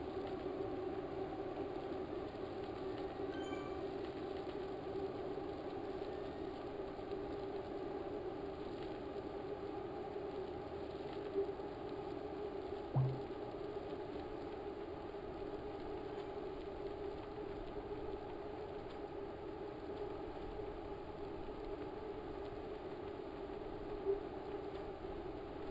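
An indoor bike trainer whirs steadily.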